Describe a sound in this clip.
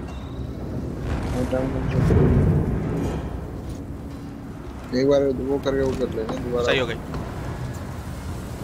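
A fire roars and crackles.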